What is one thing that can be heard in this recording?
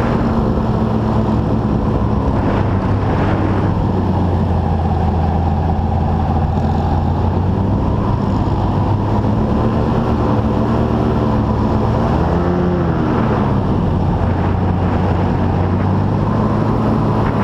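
An airboat's engine and propeller roar loudly and steadily close by.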